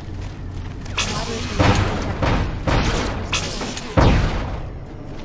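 A laser gun fires in sharp bursts.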